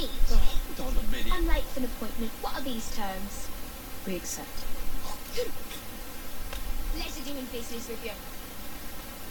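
A young girl speaks with animation, close by.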